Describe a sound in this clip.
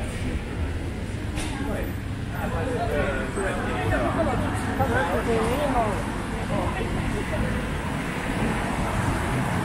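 Low city traffic rumbles steadily outdoors.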